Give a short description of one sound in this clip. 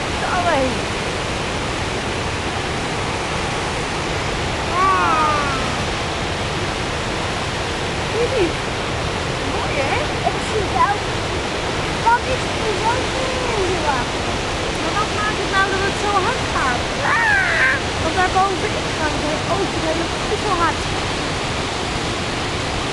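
Rapids roar steadily over rocks, loud and close.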